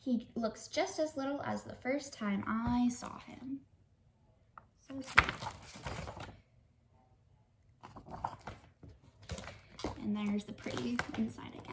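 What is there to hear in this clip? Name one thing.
A young woman reads aloud close by, with animation.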